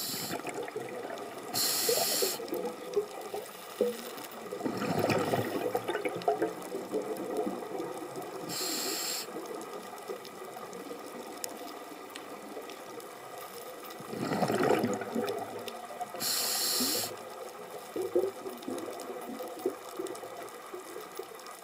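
A hermit crab's legs scrape and tap faintly over rock underwater.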